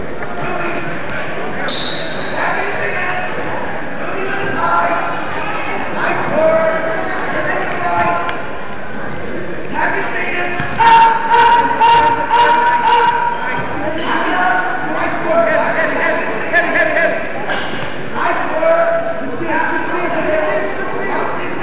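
A crowd of spectators talks and shouts in a large echoing gym.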